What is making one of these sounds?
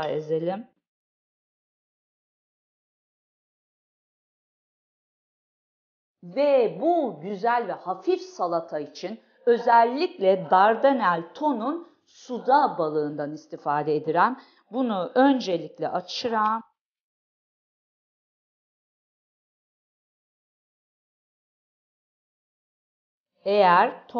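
A woman talks with animation into a nearby microphone.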